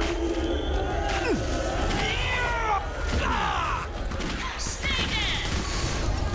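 Monsters screech and wail.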